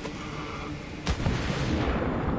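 A body plunges into water with a splash.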